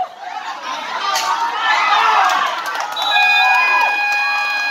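A crowd of spectators cheers loudly.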